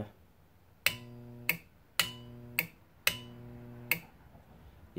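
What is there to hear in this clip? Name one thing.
A transformer hums loudly in three short bursts.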